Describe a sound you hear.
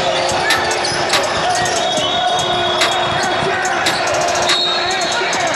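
A basketball bounces on a hard floor in a large echoing gym.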